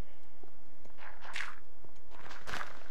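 A shovel digs into dirt with soft, crunchy scrapes.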